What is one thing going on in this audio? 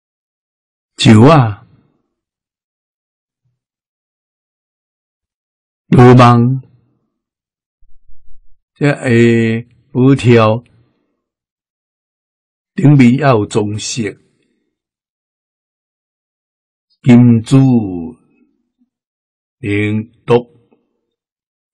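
An elderly man speaks slowly and calmly into a close microphone, with long pauses.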